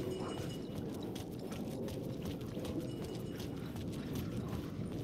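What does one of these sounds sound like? Footsteps crunch on a littered street.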